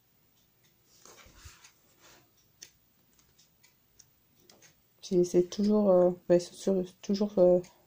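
Glossy paper sheets rustle softly as they are turned over.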